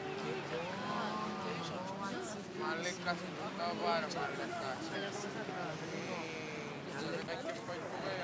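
Teenage boys talk.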